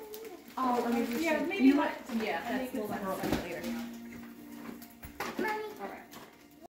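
Wrapping paper rustles and tears as a child unwraps a present.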